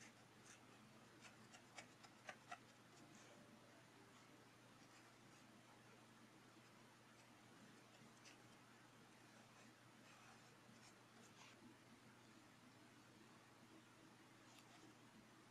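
A paintbrush brushes softly on paper.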